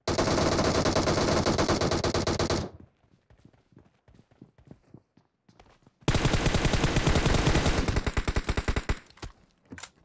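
Rapid automatic gunfire rattles loudly in two long bursts.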